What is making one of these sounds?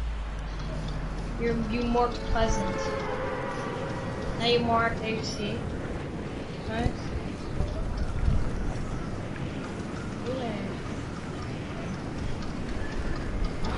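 Wind rushes steadily past a figure gliding through the air.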